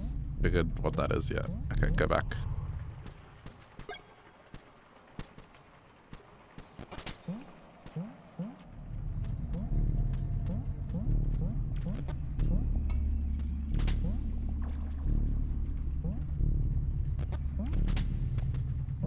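Soft electronic game music plays with low humming tones and short plucked notes.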